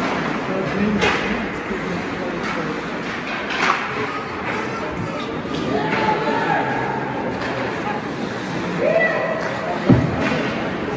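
Hockey sticks clack sharply against a puck.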